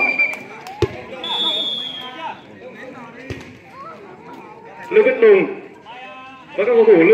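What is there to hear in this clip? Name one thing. Young women shout and call out loudly outdoors.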